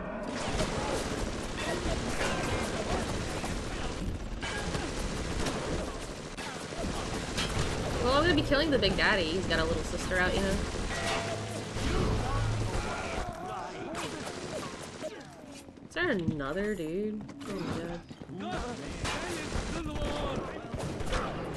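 Gunshots fire repeatedly.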